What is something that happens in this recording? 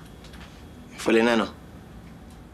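A young man speaks a short phrase calmly nearby.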